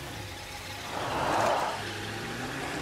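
Tyres skid on loose dirt.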